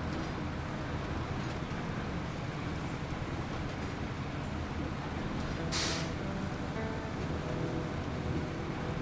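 A heavy truck creaks and rattles over a rough dirt track.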